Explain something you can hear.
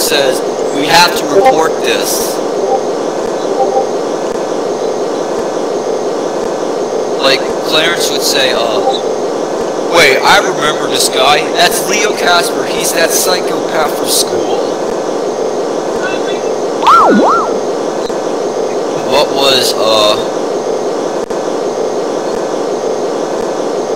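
A hovercraft engine hums steadily.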